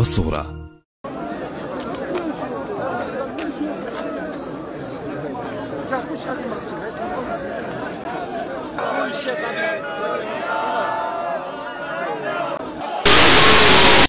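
A large crowd shouts and chatters outdoors.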